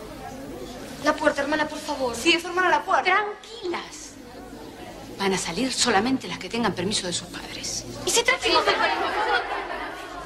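A crowd of girls chatters and calls out excitedly.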